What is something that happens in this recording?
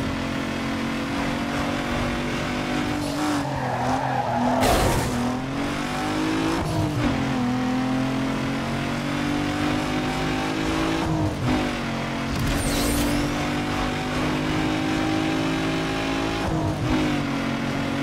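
A racing car engine roars and revs up through the gears.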